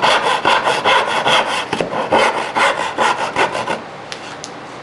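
A hand saw cuts wood with quick, rhythmic strokes.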